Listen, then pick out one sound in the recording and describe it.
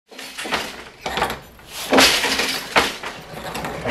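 A wooden loom beater knocks against the cloth.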